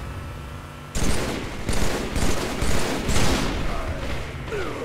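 Rifle shots crack in bursts.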